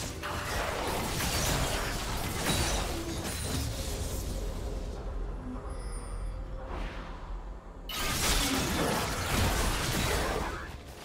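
Spell effects whoosh and burst in a video game fight.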